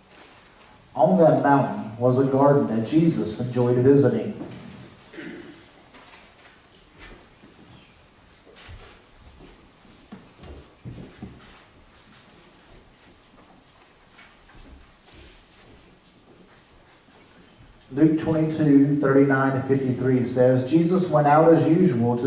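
A piano plays a gentle melody in a large echoing room.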